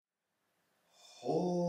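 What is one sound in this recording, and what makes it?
A man breathes in deeply.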